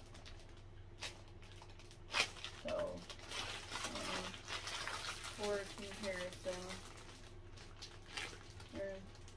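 Plastic sheets rustle and clatter in hands.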